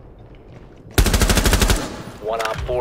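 A rapid burst of gunfire rings out loudly.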